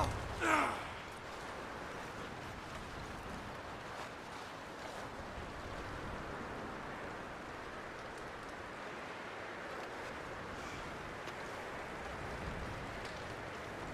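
Footsteps crunch on snow and creak on wooden boards.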